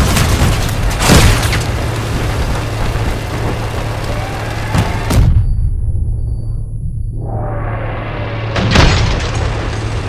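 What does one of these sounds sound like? Heavy guns fire with loud booms.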